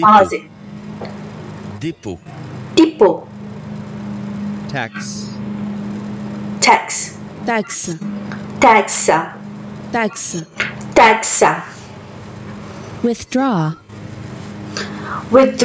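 A young woman repeats words aloud, close to a microphone.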